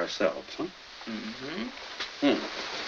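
A man speaks softly in a low voice up close.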